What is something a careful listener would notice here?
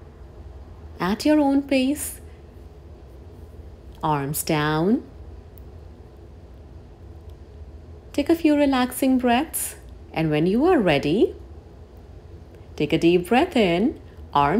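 A woman speaks calmly and clearly into a close microphone, pausing between phrases.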